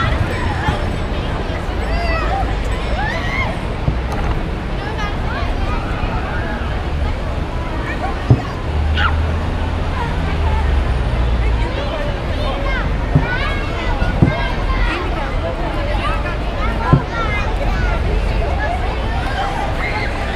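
A crowd of people chatters in a busy outdoor square.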